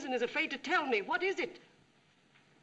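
A woman speaks urgently, close by.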